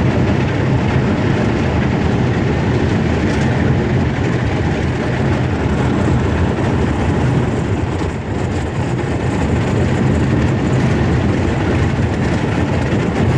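A boat's hull crunches and grinds through thin ice.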